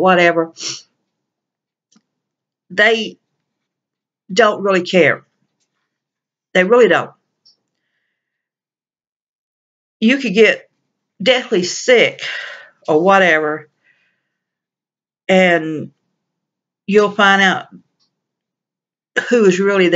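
A middle-aged woman speaks calmly and close to a microphone, in short phrases with pauses.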